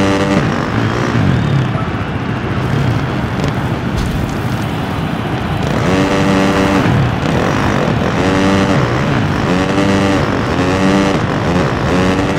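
A motorcycle engine revs loudly, rising and falling in pitch.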